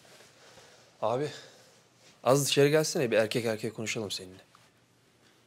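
A young man speaks firmly, close by.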